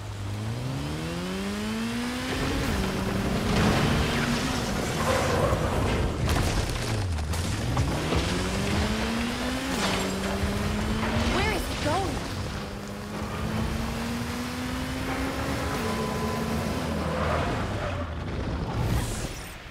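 A motorcycle engine roars, revving up and dropping as it shifts gears.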